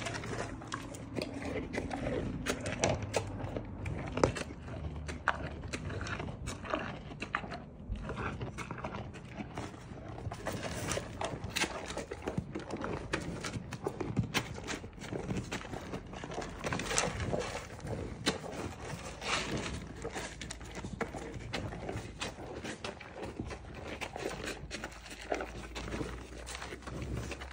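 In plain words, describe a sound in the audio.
A cow munches and crunches food up close.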